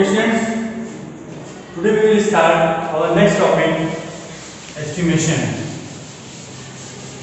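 A young man speaks calmly and clearly, as if teaching, close by.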